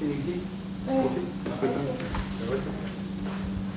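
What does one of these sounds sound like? Adults talk quietly nearby in an echoing hall.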